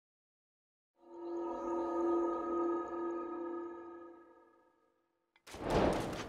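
A glowing portal hums with a bright, swelling tone.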